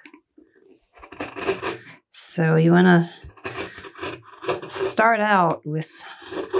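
A carving gouge shaves curls from wood with short scraping cuts.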